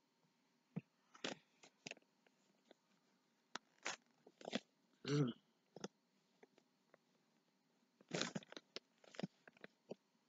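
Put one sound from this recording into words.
Paper towels crinkle and rustle close by.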